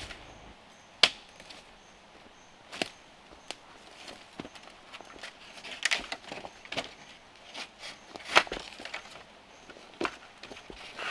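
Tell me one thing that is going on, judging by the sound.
Bamboo poles knock and clatter against each other.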